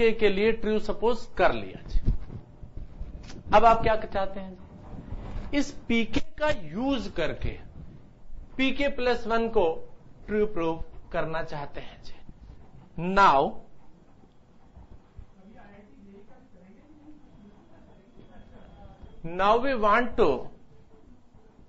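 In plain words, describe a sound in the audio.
A middle-aged man speaks calmly, explaining, close by.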